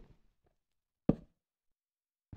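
A wooden trapdoor clunks into place.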